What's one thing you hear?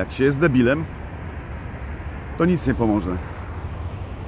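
A middle-aged man speaks briefly and casually, close by.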